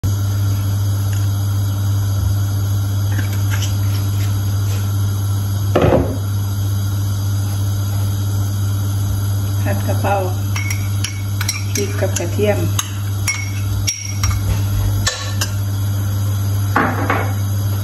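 Oil sizzles softly in a hot pan.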